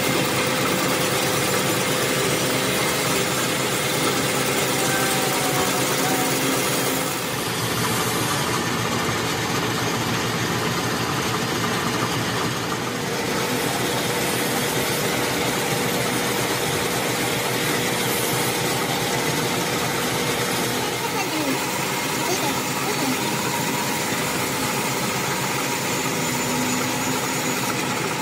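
A lathe runs steadily with a loud mechanical whir and rattle.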